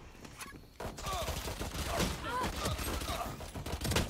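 Gunshots from a game crack in quick bursts.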